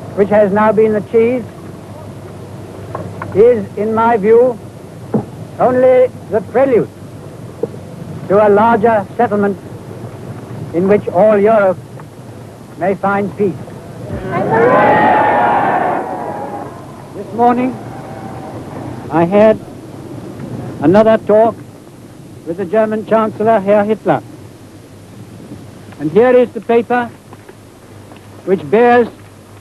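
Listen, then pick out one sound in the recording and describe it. An elderly man speaks slowly and formally into a microphone, heard through an old scratchy recording.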